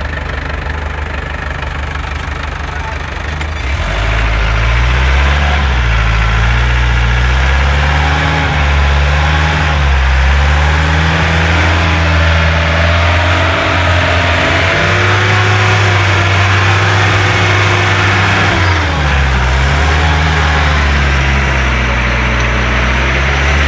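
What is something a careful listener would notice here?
An engine rumbles loudly, rising and falling in pitch as it revs.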